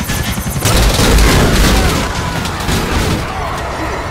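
A car crashes and tumbles with a heavy crunch.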